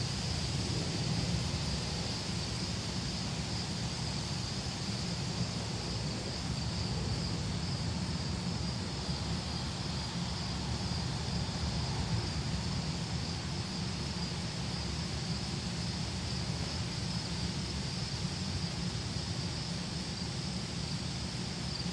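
Wind blows steadily outdoors, rustling the trees.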